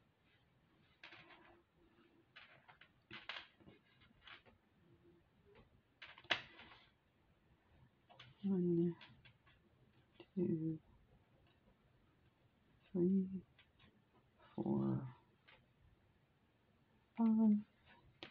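Small glass beads click and rattle softly against each other.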